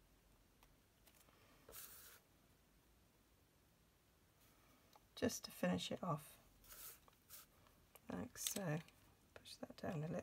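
Paper rustles and slides on a mat.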